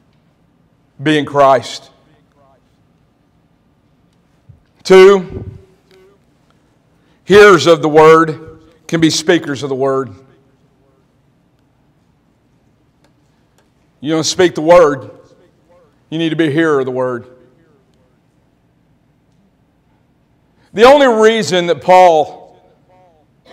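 A man preaches through a microphone in short, emphatic phrases with pauses between them, in an echoing hall.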